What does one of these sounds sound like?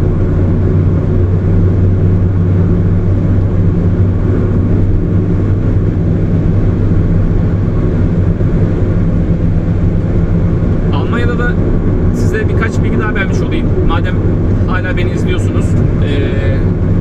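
Tyres rumble low on the road.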